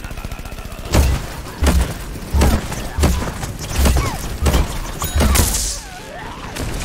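Loud blasts boom one after another.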